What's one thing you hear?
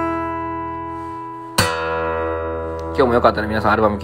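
An acoustic guitar chord rings out and fades.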